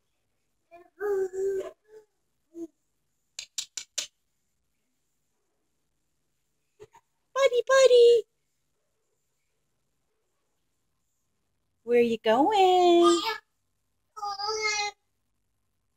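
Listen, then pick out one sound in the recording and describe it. A baby babbles and squeals close by.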